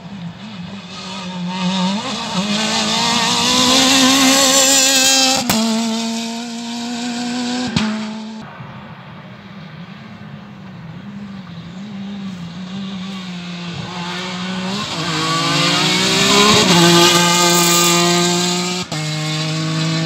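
A rally car engine roars up loudly, revving hard as it races past.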